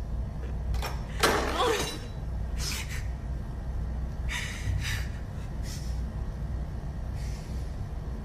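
A young woman sobs and breathes heavily.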